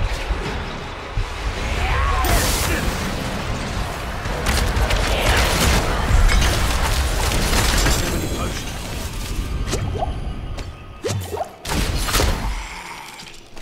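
Magic blasts crash and rumble in a fierce fight.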